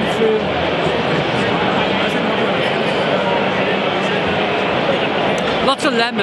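A crowd chatters loudly all around in a large echoing hall.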